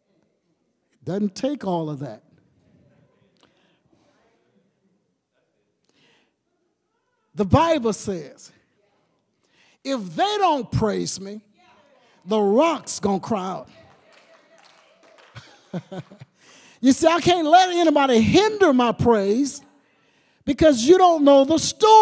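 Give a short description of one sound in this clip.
An elderly man preaches with animation into a microphone, in bursts separated by pauses.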